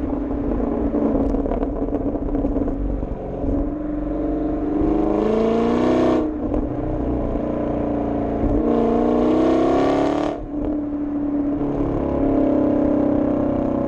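A motorcycle engine drones steadily, rising in pitch as it speeds up and dropping as it shifts gear.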